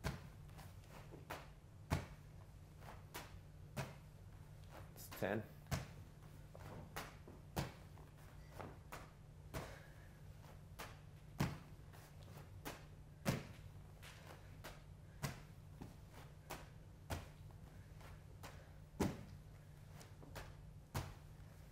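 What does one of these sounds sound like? A medicine ball thuds against a wall.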